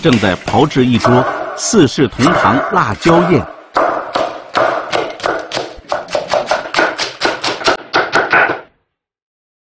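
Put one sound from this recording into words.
A cleaver chops rapidly on a wooden board.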